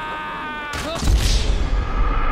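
A body slams hard onto a hillside.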